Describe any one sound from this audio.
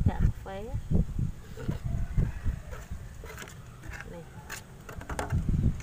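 A small trowel scrapes loose soil out of a plastic pot.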